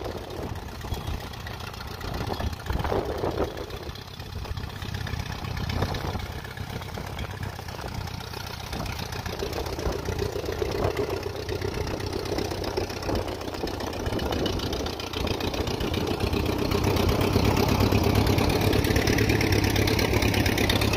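An old tractor engine chugs steadily close by.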